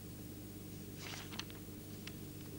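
Paper rustles briefly.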